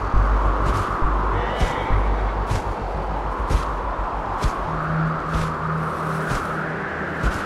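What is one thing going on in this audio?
Wind rushes steadily past a gliding eagle.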